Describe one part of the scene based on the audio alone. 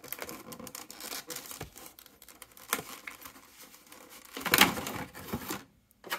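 Stiff plastic packaging crinkles and crackles as hands pull it apart.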